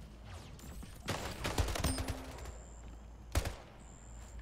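A rifle fires sharp shots in quick bursts.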